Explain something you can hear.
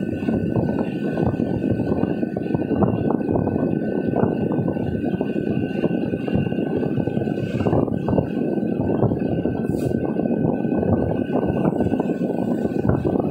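A car engine hums steadily from inside the car while driving.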